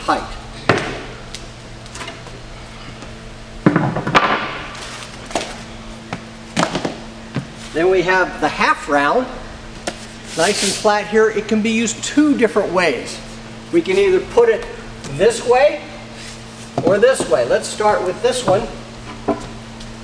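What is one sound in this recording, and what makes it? Wooden boards knock and clatter against the floor.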